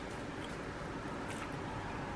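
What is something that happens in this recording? A woman crunches on raw vegetables.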